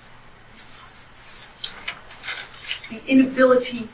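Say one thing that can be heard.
A marker squeaks on paper in quick strokes.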